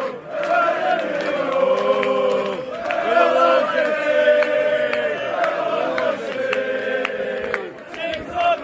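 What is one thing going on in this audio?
A large stadium crowd sings loudly together in an open-air ground.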